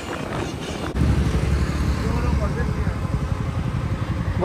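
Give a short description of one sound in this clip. Another motorcycle engine passes close by.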